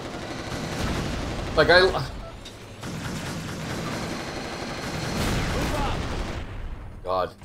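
Gunfire and explosions rumble and crackle.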